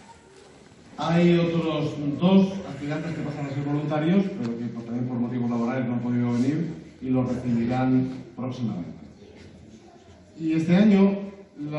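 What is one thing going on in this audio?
A man speaks calmly through a microphone and loudspeakers, echoing in a large hall.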